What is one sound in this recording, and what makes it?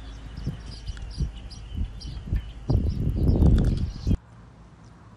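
A small monkey crunches on a piece of cucumber.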